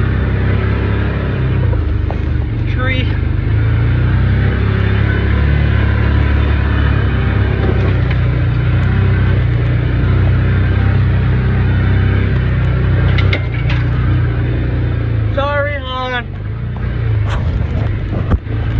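An off-road vehicle's engine rumbles steadily as it drives.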